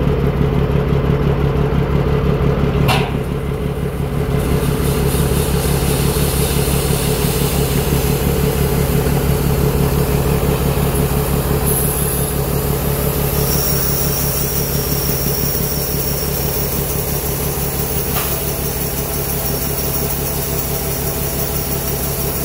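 A combine's diesel engine runs.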